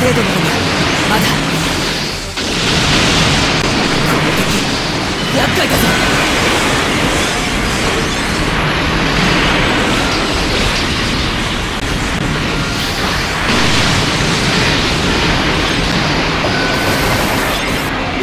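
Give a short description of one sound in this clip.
Robot thrusters roar steadily.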